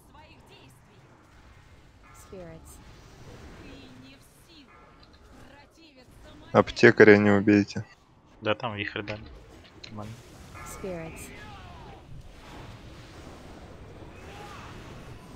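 Magic spells whoosh and crackle in a busy fight.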